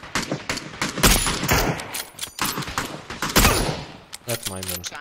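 Rifle shots crack loudly in quick succession.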